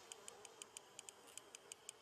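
Water splashes as a hooked fish struggles.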